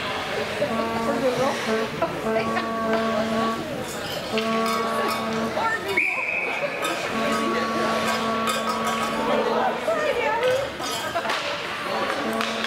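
Spectators chatter nearby in a large echoing arena.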